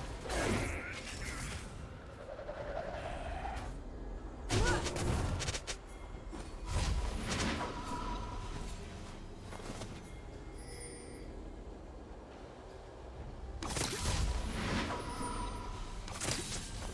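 Video game spell effects whoosh and burst in short bursts.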